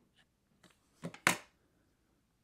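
A glue gun is set down on a table with a knock.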